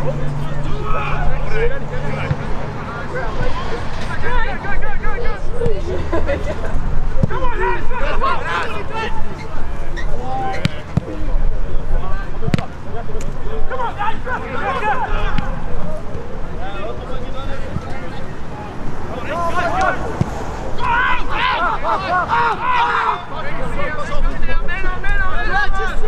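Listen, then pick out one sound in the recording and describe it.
Football players shout and call to each other across an open field.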